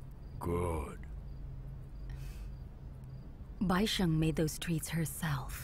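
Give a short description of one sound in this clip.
A woman speaks softly and calmly close by.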